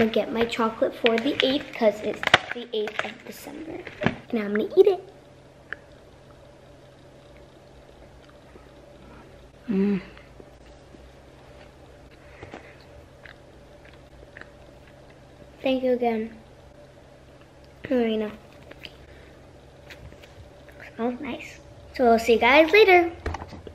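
A soft toy squeaks as a young girl squeezes it.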